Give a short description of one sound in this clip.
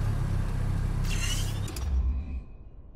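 A short whoosh sounds.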